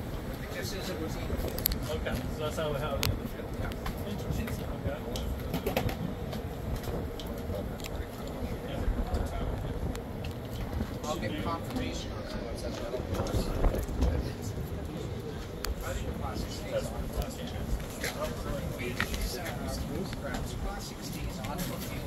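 A man speaks calmly and explains nearby, outdoors.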